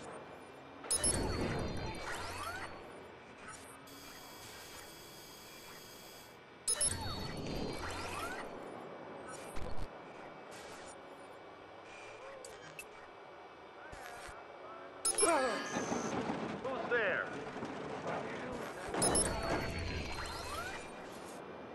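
Electronic glitchy whooshes burst out now and then.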